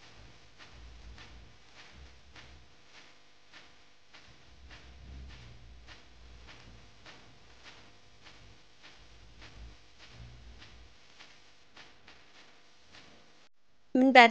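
Dough rubs and patters softly as it is rolled by hand on a countertop.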